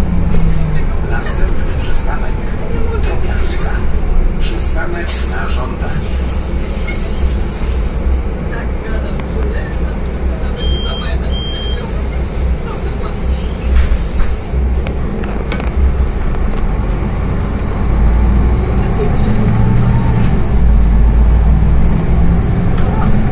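Loose panels inside a bus rattle and click.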